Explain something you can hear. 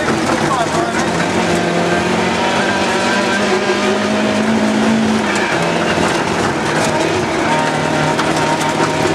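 Tyres rumble and crunch over a rough gravel road.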